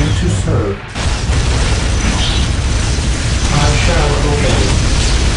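A flamethrower roars with a steady rushing blast.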